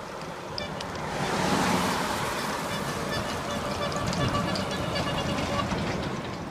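A large dump truck rumbles past up close.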